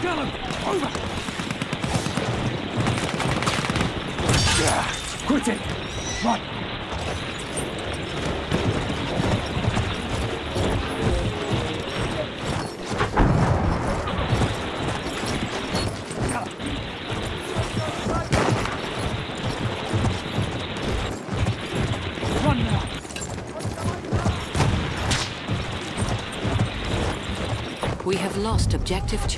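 Horse hooves pound steadily at a gallop.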